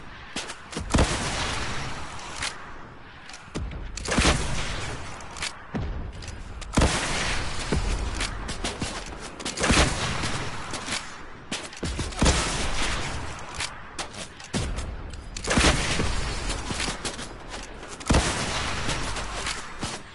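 Rockets explode with booming roars.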